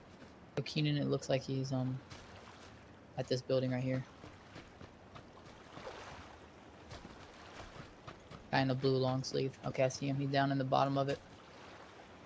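Footsteps patter quickly over grass and stone.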